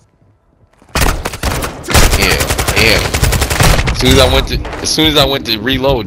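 A rifle fires rapid shots close by.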